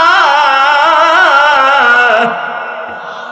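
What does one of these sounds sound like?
A man chants loudly in a long, wavering melodic voice through a microphone.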